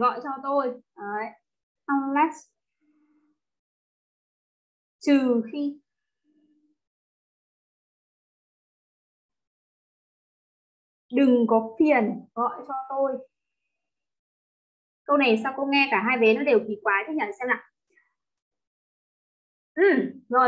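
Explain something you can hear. A young woman speaks calmly and clearly into a microphone, in short bursts with pauses.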